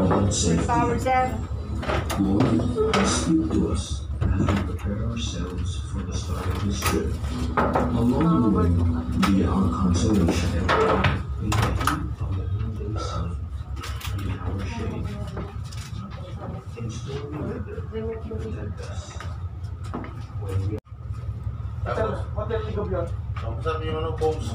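Several men and women talk casually nearby.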